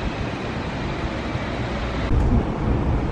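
People murmur faintly along a busy street.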